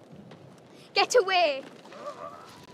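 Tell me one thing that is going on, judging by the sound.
A young girl speaks softly.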